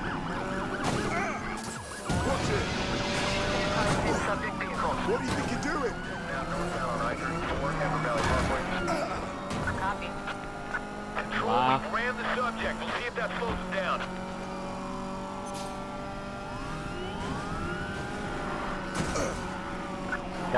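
Police sirens wail.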